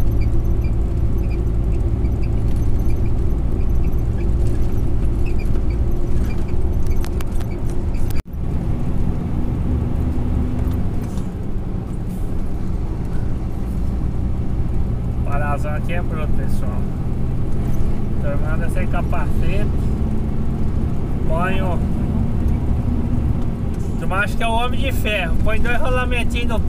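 A vehicle's engine rumbles steadily while driving.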